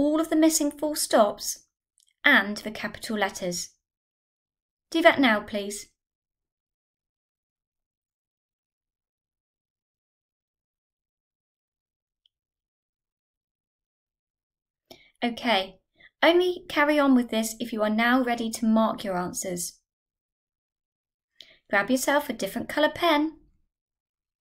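A young woman speaks calmly and clearly into a microphone, with pauses.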